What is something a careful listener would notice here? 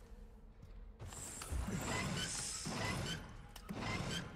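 A heavy metal wheel grinds and creaks as it turns.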